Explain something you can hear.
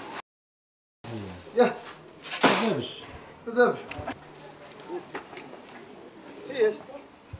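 Men talk outdoors.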